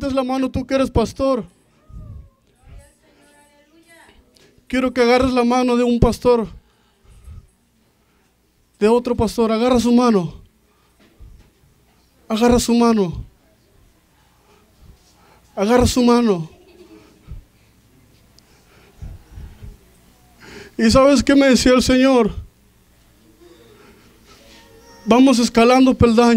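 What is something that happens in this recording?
A man preaches loudly through a microphone, in short bursts, in a room with some echo.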